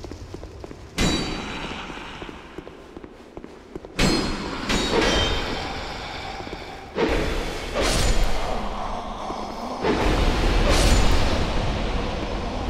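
A sword swings and strikes with sharp metallic hits.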